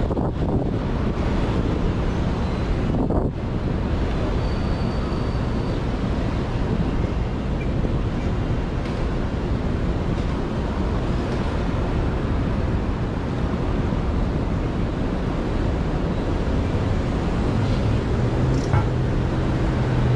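Traffic rumbles steadily on a city street outdoors.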